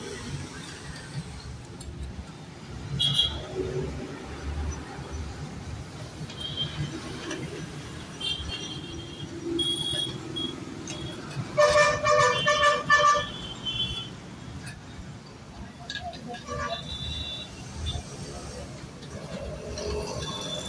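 Metal pliers scrape and clink against a metal pipe.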